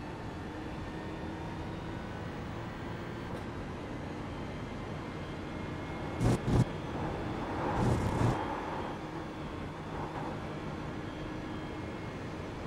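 A racing car engine drones steadily, rising and falling as the car accelerates and brakes.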